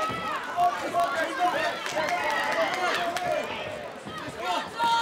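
A crowd of men shouts and cheers loudly nearby.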